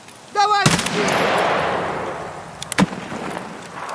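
A rifle's fire selector clicks once.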